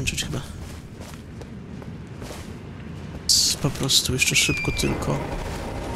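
Footsteps run over grass and rock.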